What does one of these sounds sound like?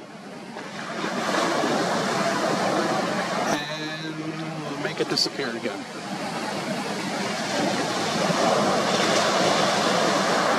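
Waves crash and roll onto the shore outdoors.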